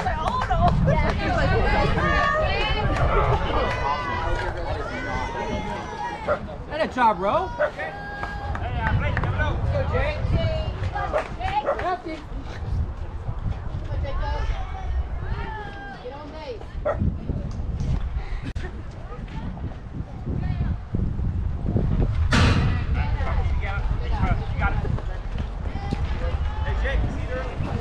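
Young girls shout and cheer nearby.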